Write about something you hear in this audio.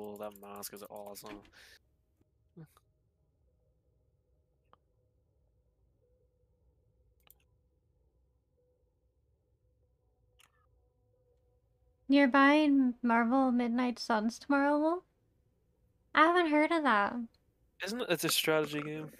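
A young woman talks with animation into a close microphone, in bursts with pauses.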